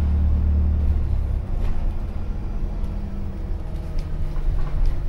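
A bus engine rumbles low and steadily from inside the bus.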